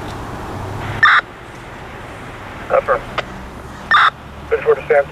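A dog barks sharply nearby.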